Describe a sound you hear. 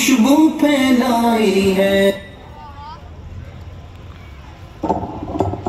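A man chants in a long, drawn-out voice through loudspeakers.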